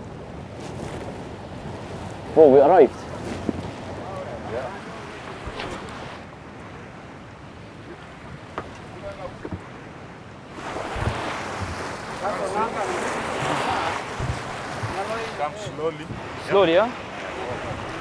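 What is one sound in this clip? A man speaks close by.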